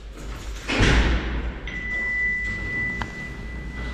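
Lift doors slide open.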